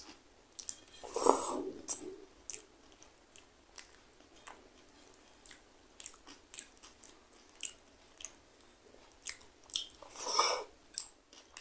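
A man chews food with loud, wet smacking sounds close to a microphone.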